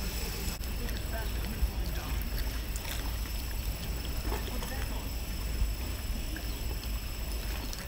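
Men talk quietly in the distance.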